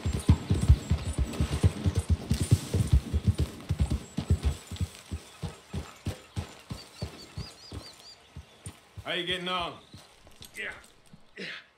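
A horse's hooves thud quickly on soft ground, then slow to a walk.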